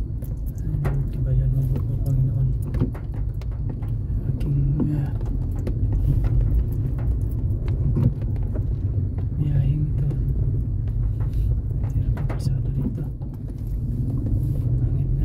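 A vehicle engine drones while driving along a wet road.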